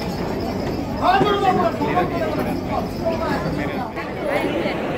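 Men shout and call out excitedly nearby.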